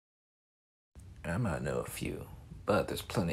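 A second man answers into a microphone, voicing a character.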